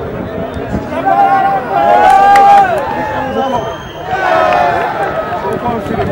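Crowd voices rise in loud cheers and shouts.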